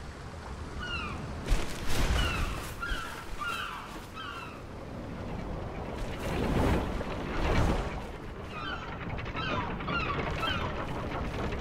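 Seagulls cry as they fly overhead.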